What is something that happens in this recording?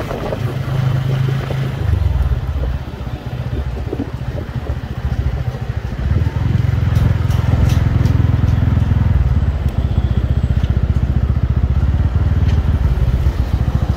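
A motorbike engine hums steadily close by as it rides along.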